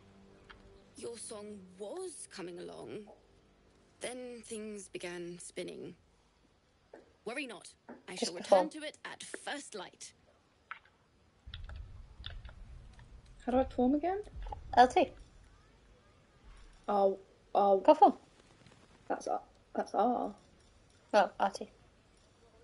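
Another young woman answers with animation, close to a microphone.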